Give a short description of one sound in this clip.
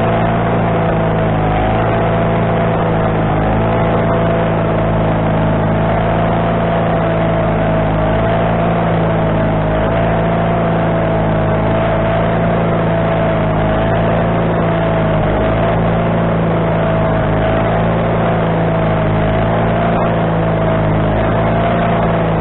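A sawmill engine runs with a loud, steady drone.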